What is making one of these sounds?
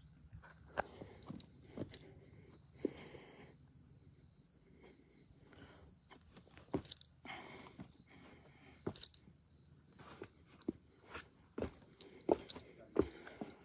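Footsteps crunch on loose stones and gravel.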